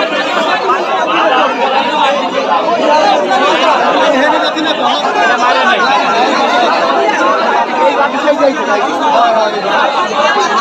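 A large outdoor crowd chatters and shouts continuously.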